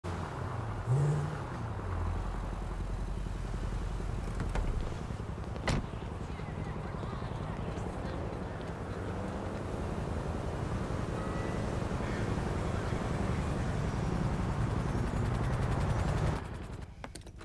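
A car engine rumbles steadily, then stops.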